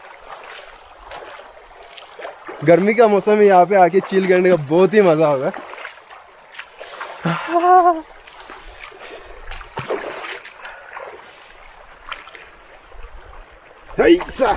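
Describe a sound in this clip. A shallow stream trickles over stones.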